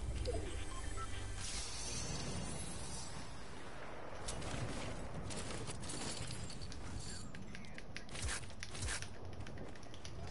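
A treasure chest creaks open with a shimmering chime.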